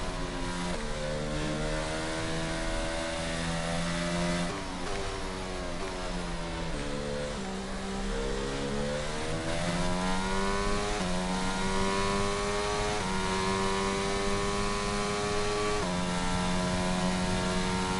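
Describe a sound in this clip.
A racing car engine whines loudly, rising in pitch and shifting up through the gears.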